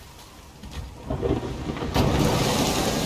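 A heavy wooden door creaks and swings open.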